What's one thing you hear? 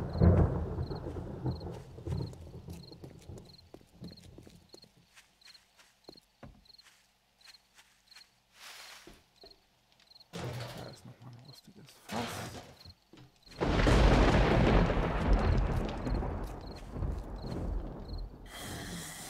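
Footsteps crunch steadily on gravel and grass.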